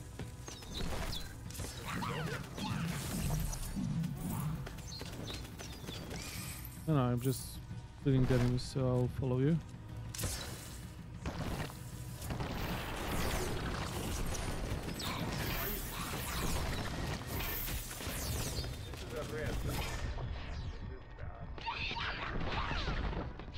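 Game combat effects whoosh and crackle.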